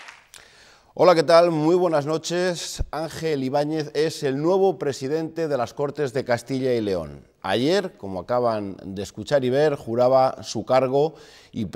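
A man speaks calmly into a microphone, like a news presenter.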